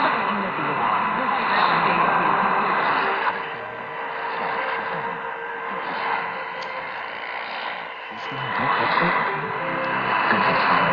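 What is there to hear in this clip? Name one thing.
A small radio loudspeaker hisses and crackles with static.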